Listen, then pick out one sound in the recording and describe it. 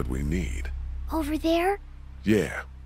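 A young girl asks a short question, close by.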